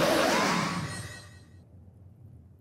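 A huge creature lets out a loud, rumbling roar that fades away.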